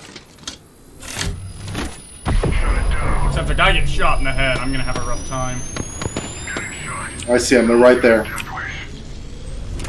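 A healing device whirs and crackles with electricity as it charges.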